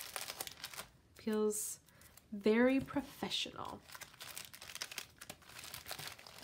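Paper and card rustle softly as they are handled up close.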